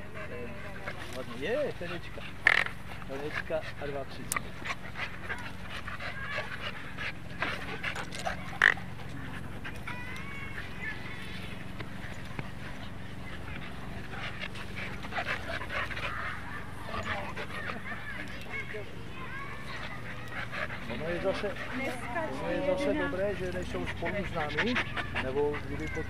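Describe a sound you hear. Dogs growl and snarl playfully as they wrestle.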